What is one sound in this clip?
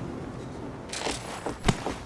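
A heavy rotary gun fires a rapid burst.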